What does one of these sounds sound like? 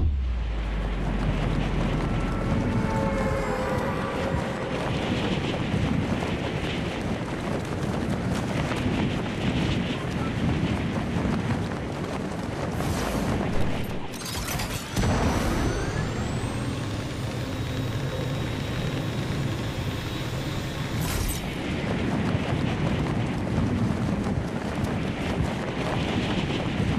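Wind rushes steadily past during a fast fall through the air.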